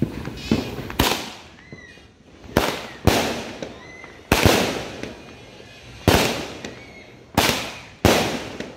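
Fireworks bang loudly again and again outdoors, each boom echoing away.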